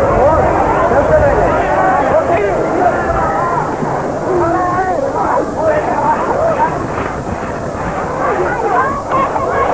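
Young men shout with excitement as they run and scuffle.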